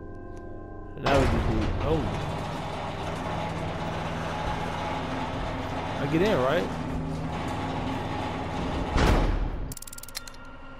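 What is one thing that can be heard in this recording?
An engine rumbles loudly and then cuts out.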